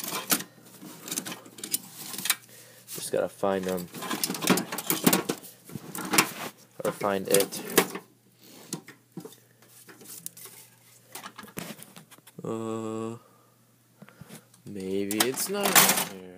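Metal tools clatter and clink as a hand rummages through a drawer.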